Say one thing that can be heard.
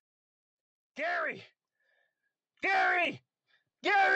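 A cartoon man shouts in short, strained bursts.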